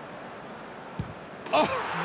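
A ball is struck with a sharp thud.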